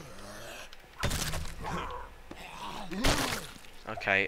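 Heavy blows thud hard against a body.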